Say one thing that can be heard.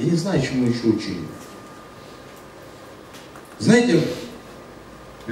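A man speaks calmly into a microphone, heard through loudspeakers in an echoing room.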